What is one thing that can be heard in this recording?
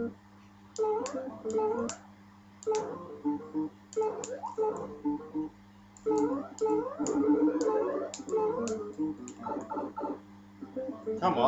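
Blips and beeps from a retro video game play in quick bursts.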